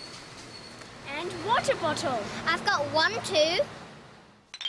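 A boy speaks with animation close by.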